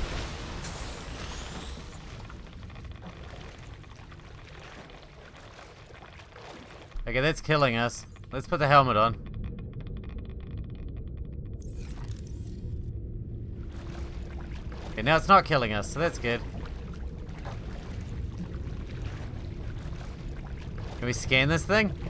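Waves lap and slosh steadily.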